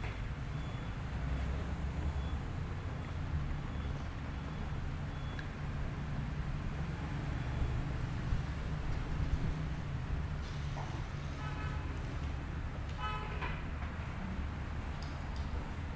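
High heels click on a tiled floor.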